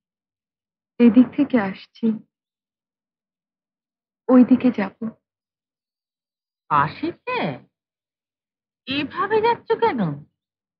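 A middle-aged woman speaks close by in short, earnest phrases.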